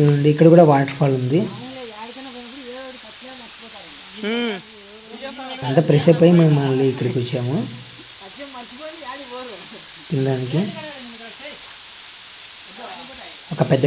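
Several young men talk and call out loudly close by, outdoors.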